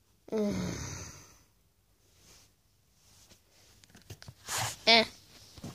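Soft plush toys rustle and bump as a hand moves them.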